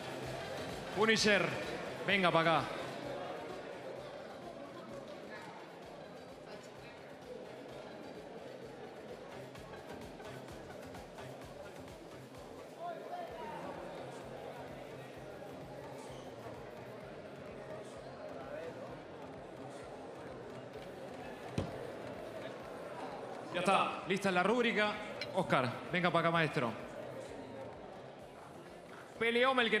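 A young man shouts with excitement close by.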